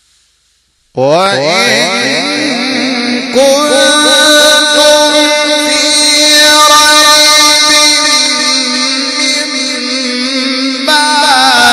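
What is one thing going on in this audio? A man chants in a long, wavering melody through a microphone and loudspeakers.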